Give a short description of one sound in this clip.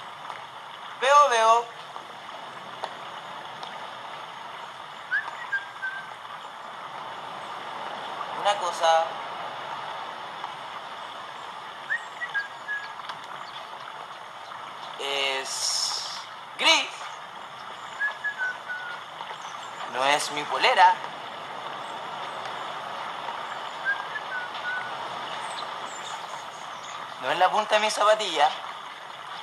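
A young man speaks in short, lively bursts close by.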